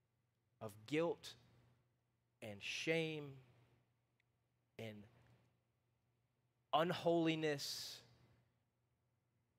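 A man speaks calmly through a microphone in a large echoing hall, in short phrases with pauses.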